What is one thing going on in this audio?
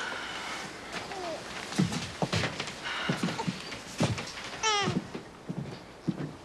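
A woman speaks in a tense, quiet voice nearby.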